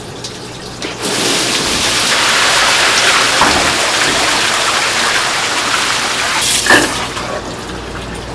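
Water runs steadily from a hose into a tub of water.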